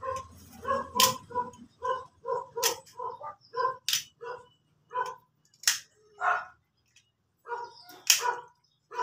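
Small plastic parts click and tap as a man's hands handle them up close.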